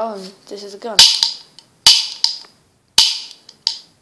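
A plastic toy gun clicks sharply.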